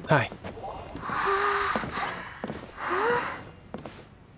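A young man speaks cheerfully.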